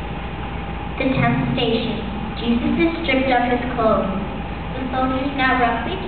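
A young girl reads out into a microphone.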